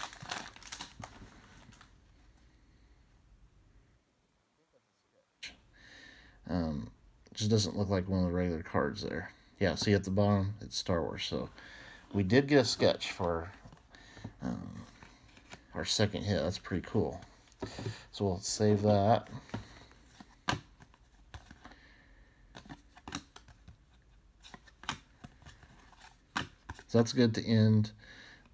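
Trading cards slide and rustle against each other as hands flip through them.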